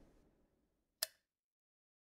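A metal lever switch clicks sharply.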